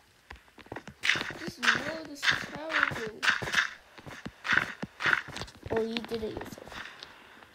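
Dirt blocks are placed with soft, quick thuds.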